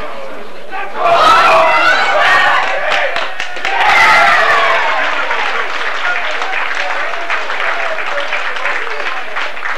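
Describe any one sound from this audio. A small crowd of spectators cheers outdoors.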